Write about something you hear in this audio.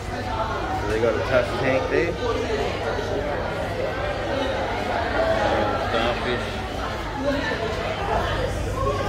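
A crowd of people chatters in a busy echoing hall.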